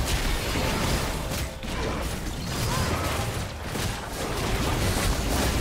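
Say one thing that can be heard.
Spell effects crackle and boom in a video game battle.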